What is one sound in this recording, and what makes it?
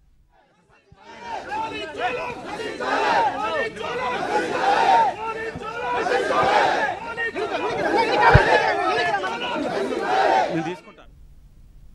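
A crowd of men shouts and clamours close by.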